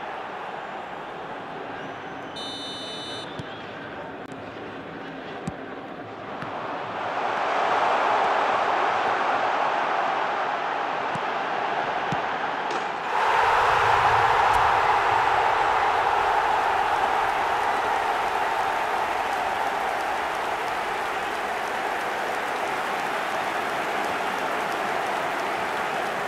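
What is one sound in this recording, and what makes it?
A stadium crowd roars and cheers loudly, swelling to a big roar.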